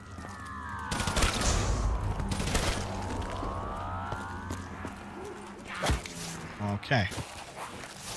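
Guns fire in bursts in a video game.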